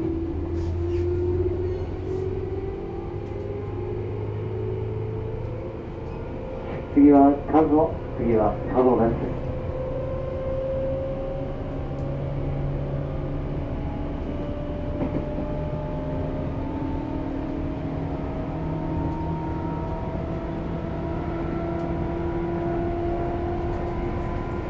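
An electric train's motor hums and whines steadily with slowly shifting tones.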